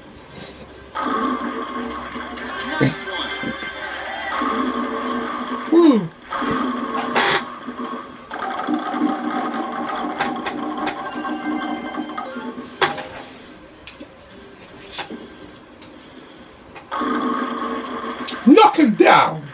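A bowling ball rolls down a lane, heard through a television speaker.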